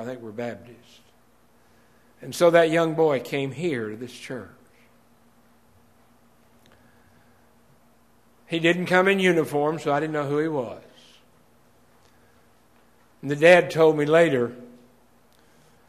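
An elderly man speaks slowly and firmly into a microphone, with long pauses.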